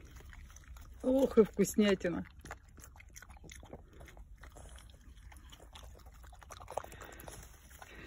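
A dog chews and smacks its lips close by.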